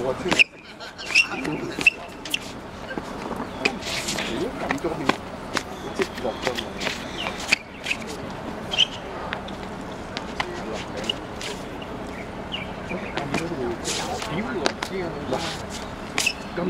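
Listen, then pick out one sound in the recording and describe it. Men and women chat quietly nearby outdoors.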